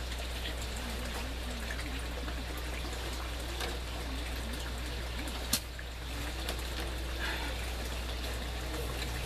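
An elderly man speaks quietly and calmly close by.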